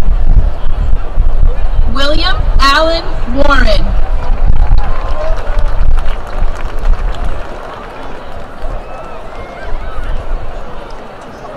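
A crowd cheers in the distance.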